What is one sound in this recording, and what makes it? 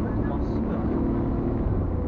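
A truck passes close by.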